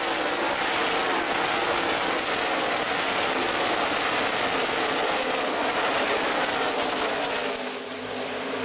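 Race car engines roar loudly as a pack of cars speeds past close by.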